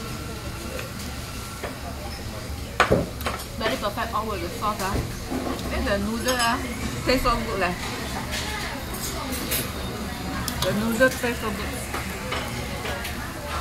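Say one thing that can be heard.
Chopsticks clink against a plate.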